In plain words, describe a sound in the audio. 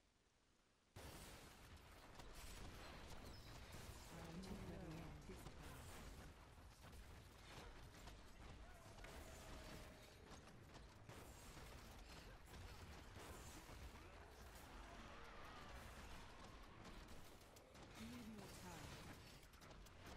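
Energy blasts zap and hiss.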